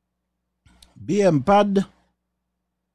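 A man exclaims in surprise.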